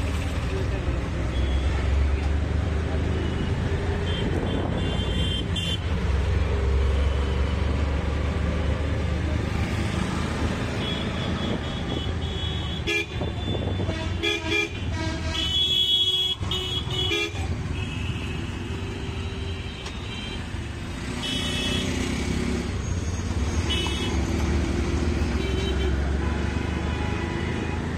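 A small vehicle engine rumbles steadily up close while riding.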